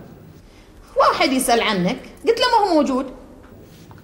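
A middle-aged woman speaks sharply nearby.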